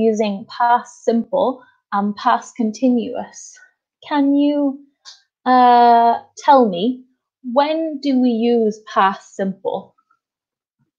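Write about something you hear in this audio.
A young woman speaks clearly and with animation over an online call.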